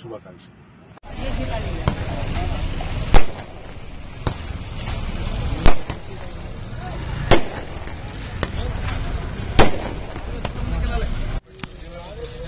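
Firecrackers burst with loud bangs.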